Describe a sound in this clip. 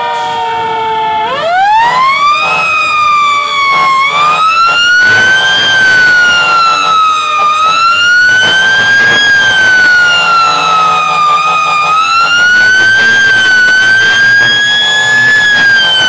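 A fire engine siren wails close by, rising and falling slowly.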